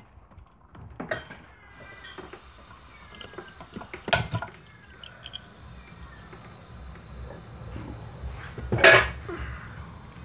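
Metal tools clink and knock on a workbench.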